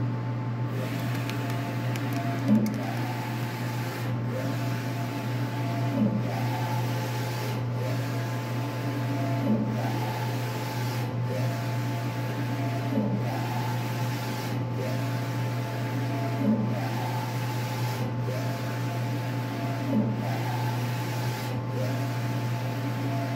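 A print head whirs back and forth across the printer in a regular rhythm, with a soft clunk at each turn.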